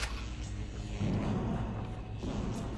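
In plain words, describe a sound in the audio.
A heavy door slides open with a deep whoosh.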